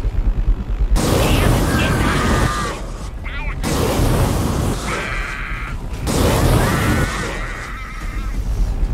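Loud explosions boom and crackle in a video game.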